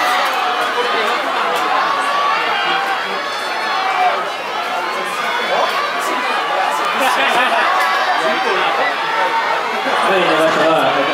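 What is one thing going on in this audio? A crowd of spectators shouts and cheers in an open stadium.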